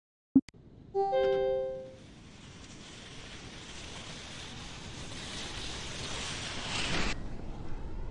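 Skis hiss down an icy track, getting faster.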